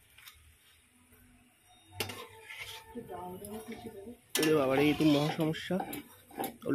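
A metal spatula scrapes against a metal pan.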